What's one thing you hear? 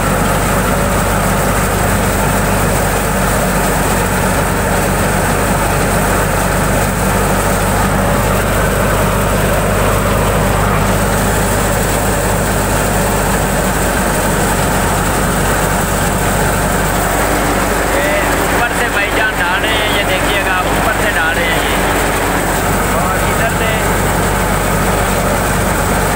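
Grain pours and patters into a metal tub.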